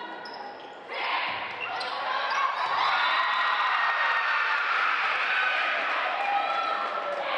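A crowd cheers and applauds in a large echoing gym.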